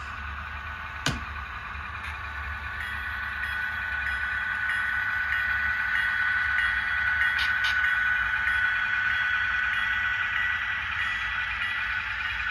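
Model train wheels click over rail joints.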